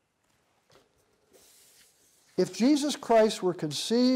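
Paper rustles as a sheet is handled.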